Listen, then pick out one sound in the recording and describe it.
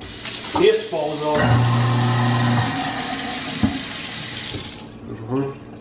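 Water runs from a tap and splashes into a sink.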